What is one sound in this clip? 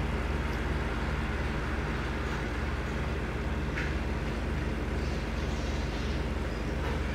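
A truck engine rumbles steadily at cruising speed.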